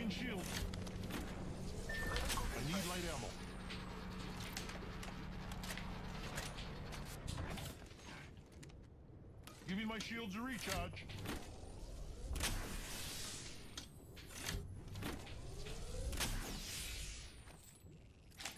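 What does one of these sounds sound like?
A shield recharger hums and whooshes as it charges up.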